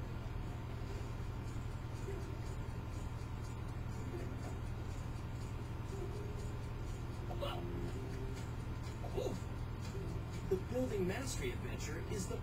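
Cheerful game music and sound effects play from a television speaker.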